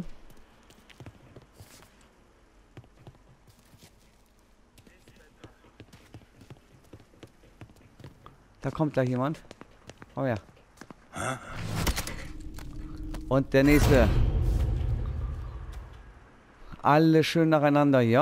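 Footsteps shuffle softly across a wooden floor.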